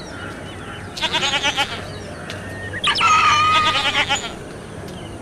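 Goats bleat loudly.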